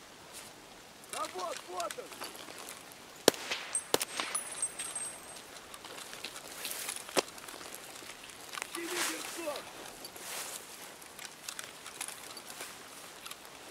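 Footsteps crunch through grass and brush outdoors.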